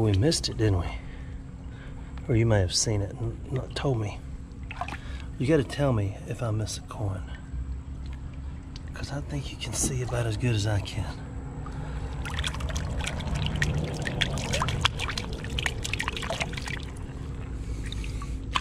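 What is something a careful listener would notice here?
A hand splashes and swishes through shallow water.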